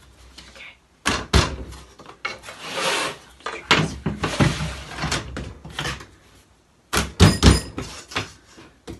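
A rolling pin knocks against a wooden board.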